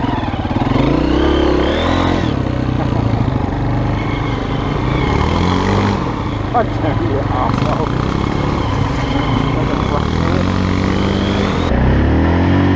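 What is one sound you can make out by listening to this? A motorbike engine revs up and down close by.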